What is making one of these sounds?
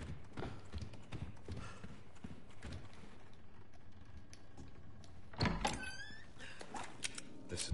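Footsteps thud on creaky wooden boards.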